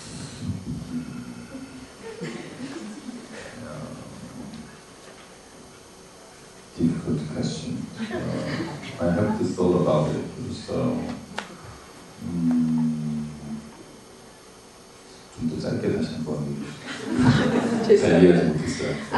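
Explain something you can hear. A young man talks into a microphone, heard through loudspeakers.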